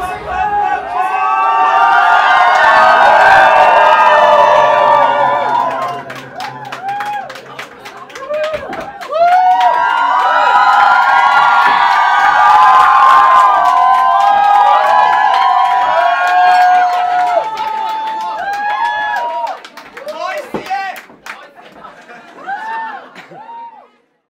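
A crowd of young people cheers and screams loudly.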